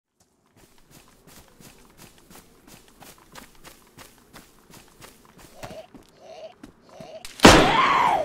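Footsteps run quickly through grass and over hard ground.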